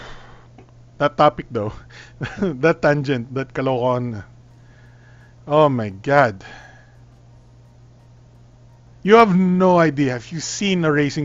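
A man talks casually and with animation close to a microphone.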